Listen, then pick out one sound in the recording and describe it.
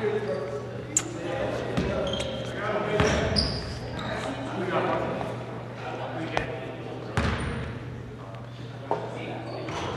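A basketball thumps on the court.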